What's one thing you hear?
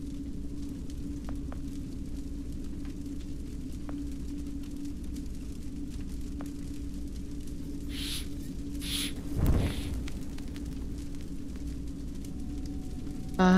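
A fire crackles steadily in a fireplace.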